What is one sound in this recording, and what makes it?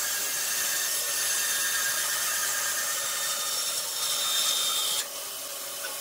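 A band saw cuts through a thick timber.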